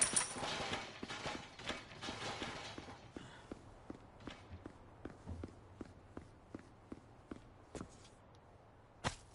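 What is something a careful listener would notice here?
Footsteps thud steadily on a hard stone floor.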